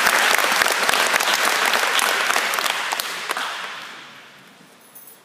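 A crowd applauds in a large echoing hall, then the clapping fades.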